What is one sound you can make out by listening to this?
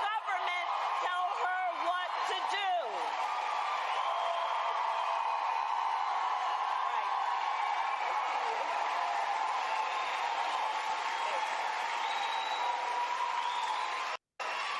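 A large crowd cheers and shouts steadily.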